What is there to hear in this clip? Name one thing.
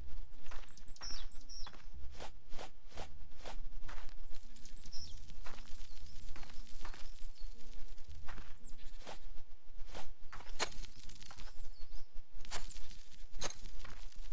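A rake scrapes through loose dirt with repeated short strokes.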